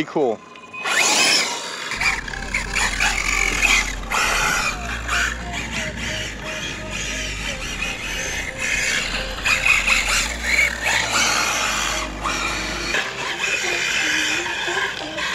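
Tyres of a model car skid and scrabble on loose dirt.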